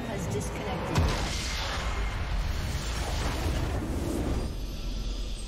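A large building explodes with a deep rumbling blast.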